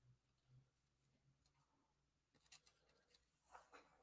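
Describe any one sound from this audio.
Paper rustles softly.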